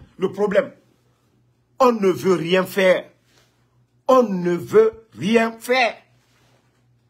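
A man speaks with animation close to a phone microphone, in short bursts.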